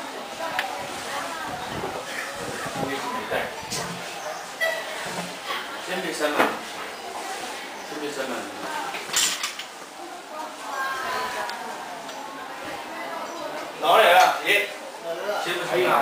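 Footsteps thud down wooden stairs.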